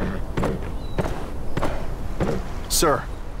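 A horse's hooves clop at a steady pace.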